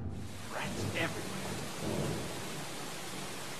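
A young man speaks quietly into a microphone.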